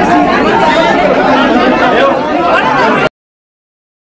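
A crowd of young people shouts and chatters loudly close by.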